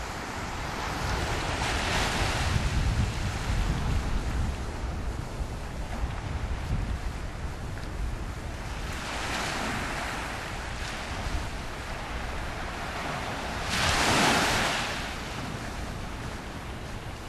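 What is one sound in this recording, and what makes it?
Small waves wash softly onto the shore.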